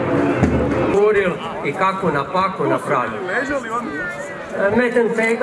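A large crowd of spectators murmurs outdoors.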